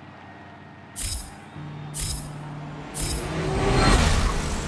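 A car engine revs loudly and roars away.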